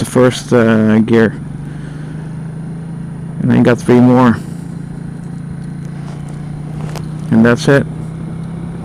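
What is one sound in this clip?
A motorcycle engine revs up in short bursts.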